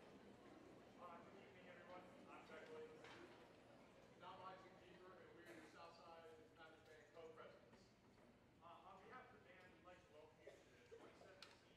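A young man speaks with animation into a microphone in an echoing hall.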